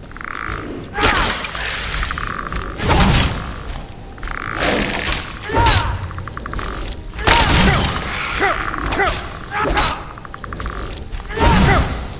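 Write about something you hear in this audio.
A magic frost blast bursts with a crackling, icy hiss, again and again.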